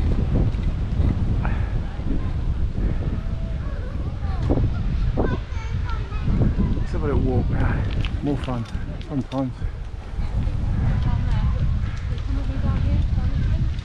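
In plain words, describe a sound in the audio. Wind buffets a microphone steadily while riding outdoors.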